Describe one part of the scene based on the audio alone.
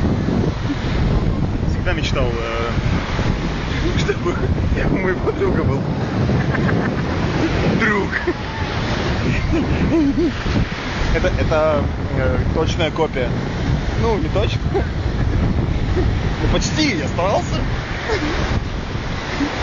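Wind rumbles outdoors against the microphone.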